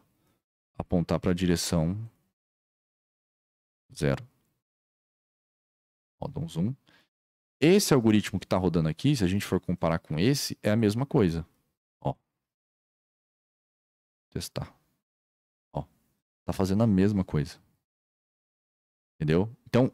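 A young man talks calmly into a microphone, in short bursts with pauses.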